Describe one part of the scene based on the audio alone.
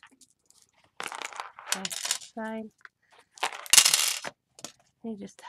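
Stiff paper rustles and flaps as it is handled.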